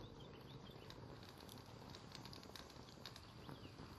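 A small fire crackles softly.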